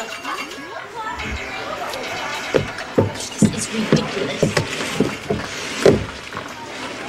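Plastic balls rattle and clatter as a young woman climbs into a ball pit.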